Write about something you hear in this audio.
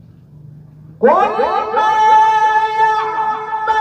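A man sings a long, drawn-out chant loudly through a microphone.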